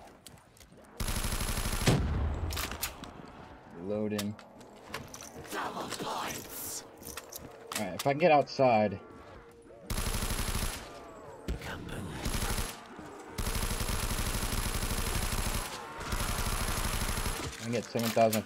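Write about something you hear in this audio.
A rapid automatic gun fires in loud bursts.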